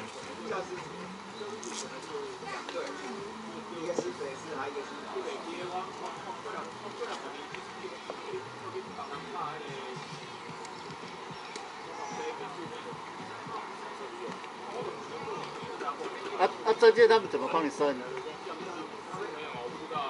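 Young players call out to one another across an open field outdoors.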